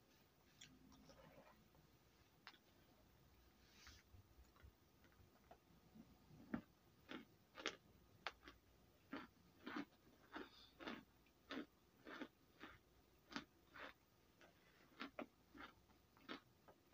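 Powder crunches and squeaks as hands squeeze it.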